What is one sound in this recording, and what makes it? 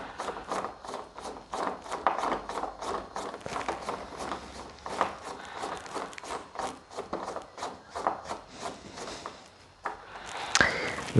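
A screwdriver scrapes and clicks as it turns a screw in metal.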